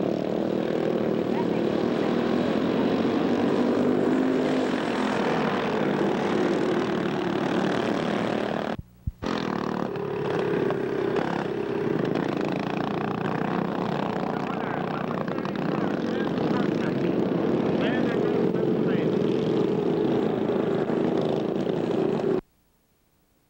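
Small kart engines buzz and whine loudly as karts race around outdoors.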